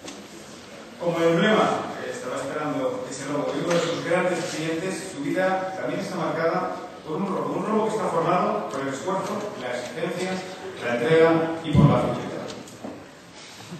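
A man speaks into a microphone at a podium, heard over loudspeakers in a large echoing hall.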